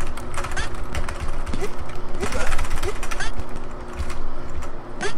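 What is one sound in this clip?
Game music plays throughout.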